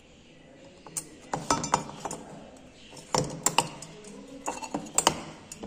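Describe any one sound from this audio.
A metal gauge clicks and taps against a brass cup.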